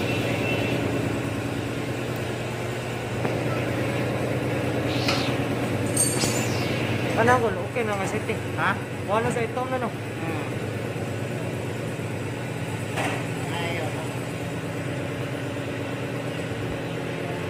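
A pump draws oil through a hose with a steady hum.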